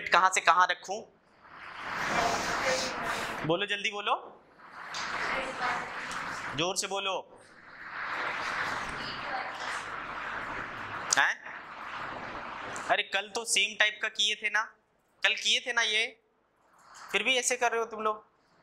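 A young man speaks into a clip-on microphone, explaining calmly.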